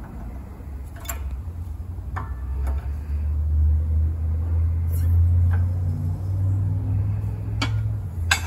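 A hydraulic jack handle is pumped, with metal clicking and clanking on each stroke.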